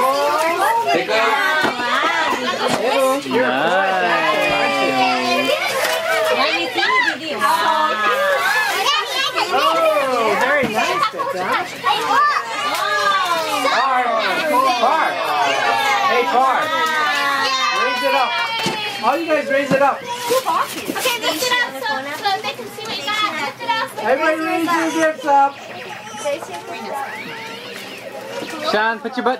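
Several women and children talk and laugh excitedly nearby, all at once.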